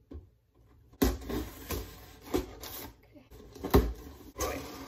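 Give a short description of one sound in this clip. A knife slices through cardboard tape.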